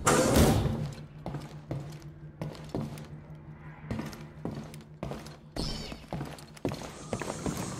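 Footsteps thud on a metal floor.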